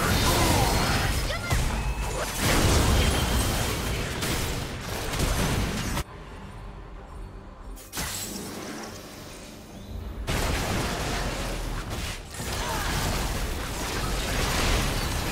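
Game spell effects blast and crackle in a fast fight.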